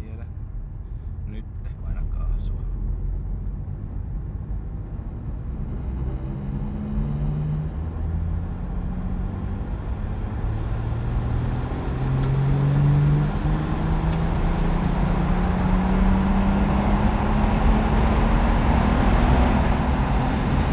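A car engine revs and climbs through the gears as it speeds up.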